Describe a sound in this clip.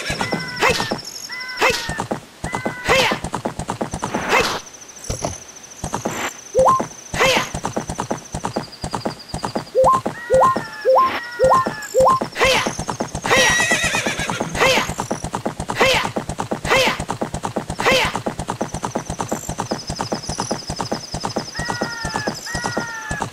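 A horse gallops quickly, its hooves pounding in a fast, steady rhythm.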